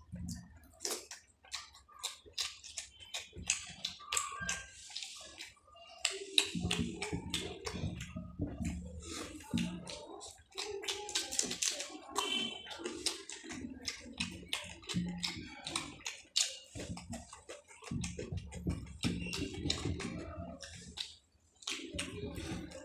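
Fingers squelch and squish through wet rice on a plate.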